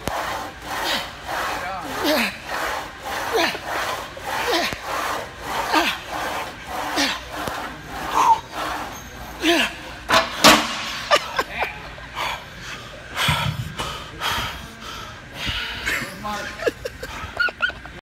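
A young man laughs close to the microphone.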